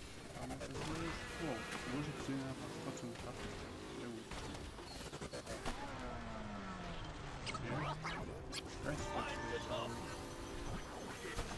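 Car engines roar and whine as they race.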